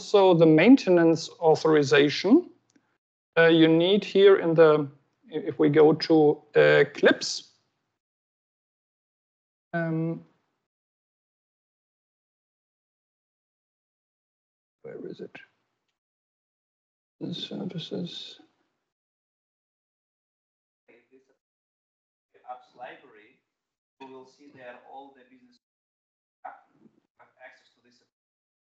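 A woman speaks calmly through an online call, with pauses.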